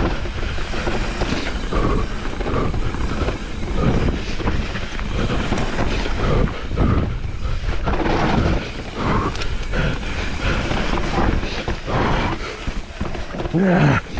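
A bicycle chain and frame rattle over the bumps.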